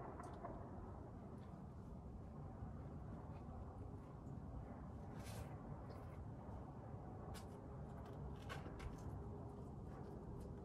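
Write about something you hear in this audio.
A climber's shoes and hands scuff on rock in the distance.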